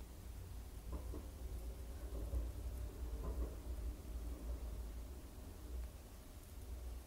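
A young woman whispers softly, close by.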